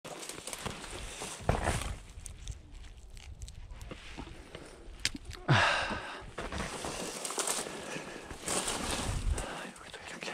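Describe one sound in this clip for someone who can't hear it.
Dry leaves and twigs rustle underfoot.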